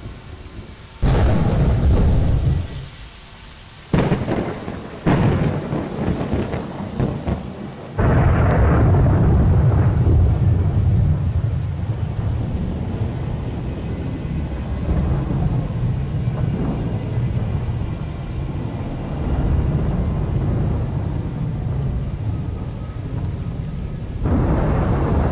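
Thunder rumbles loudly and deeply.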